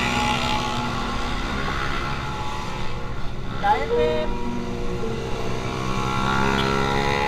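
A motorcycle engine hums up close, its pitch rising and falling.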